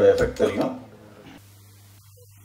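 A middle-aged man speaks through a microphone.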